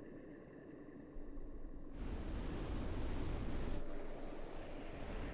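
A spacecraft engine hums with a low, steady rumble.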